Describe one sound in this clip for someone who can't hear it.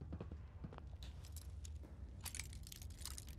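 A lock clicks as it is picked.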